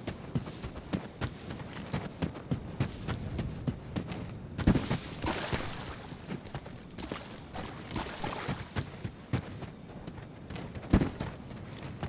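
Footsteps crunch over rough ground at a steady walking pace.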